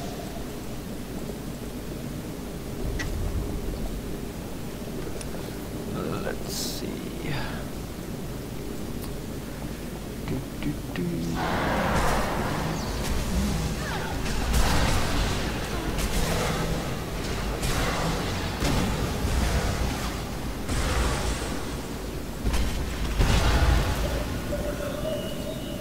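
A young man talks calmly into a microphone.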